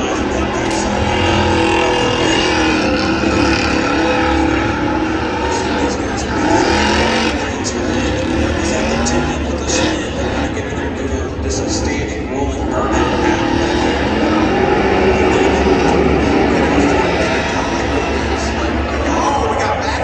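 Car engines roar loudly at a distance outdoors.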